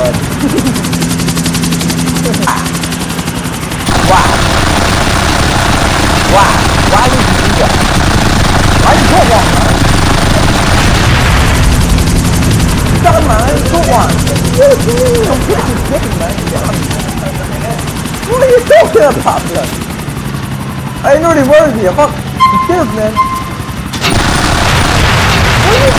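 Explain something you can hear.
A helicopter's rotor thumps steadily.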